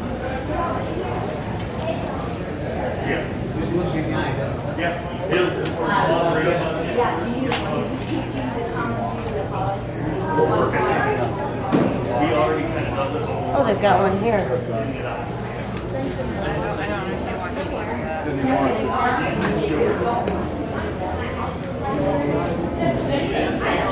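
A crowd of men and women chatter nearby in a large echoing hall.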